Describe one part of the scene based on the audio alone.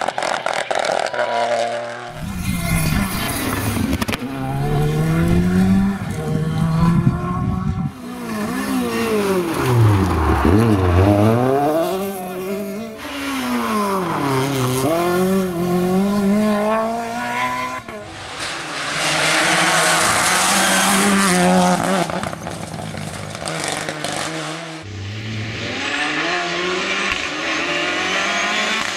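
Rally car engines roar and rev hard as cars speed past, one after another.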